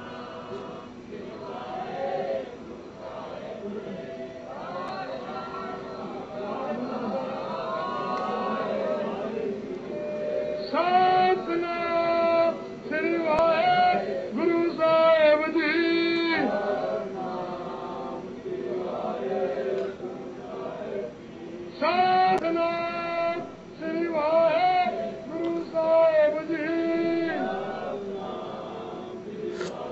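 An electronic keyboard plays a bright synthesized melody through its small speaker.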